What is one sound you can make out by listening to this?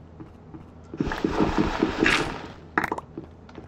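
A sieve rattles as gravel is sifted.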